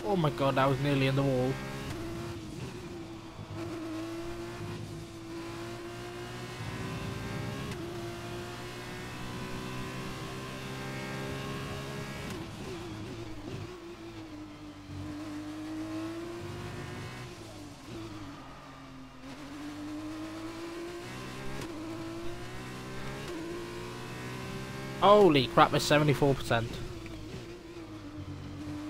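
A racing car engine whines and roars, rising and falling as the gears shift.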